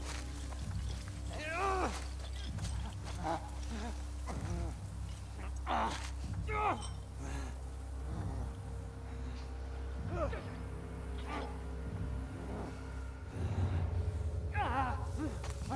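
Tall grass rustles softly as someone crawls through it.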